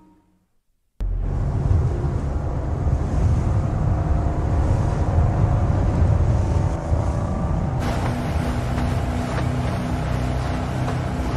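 A motorboat engine roars loudly and steadily.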